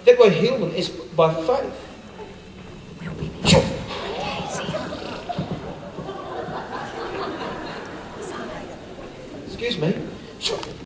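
A man speaks with animation into a microphone and is heard over a loudspeaker in a large hall.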